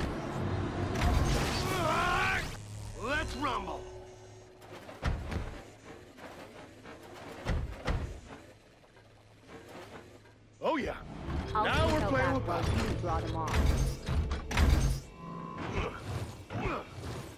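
Zombies groan and moan nearby.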